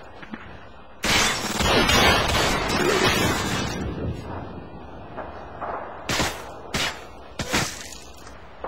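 Gunshots crack sharply in quick bursts.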